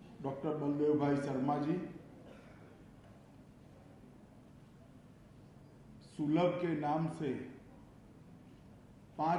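A middle-aged man speaks slowly and deliberately into a microphone, with pauses.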